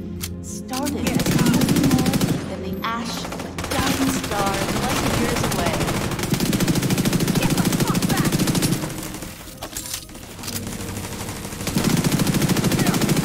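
Rapid automatic gunfire rattles in bursts.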